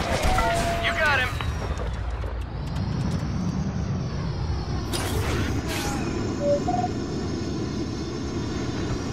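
A starfighter's engines roar steadily.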